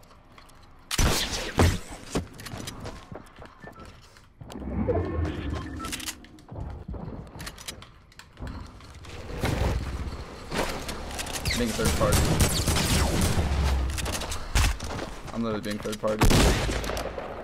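A game shotgun blasts loudly.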